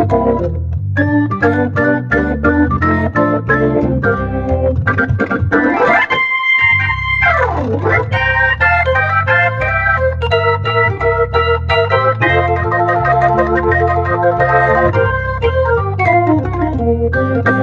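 An electric organ plays a lively, bouncy tune with a steady bass line and quick sliding runs.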